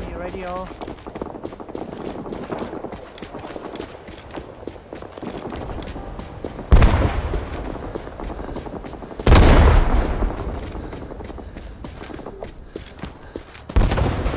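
Footsteps crunch steadily through undergrowth.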